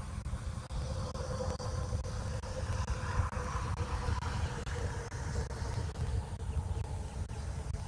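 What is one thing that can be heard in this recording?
A car drives past on a nearby road, rising and then fading.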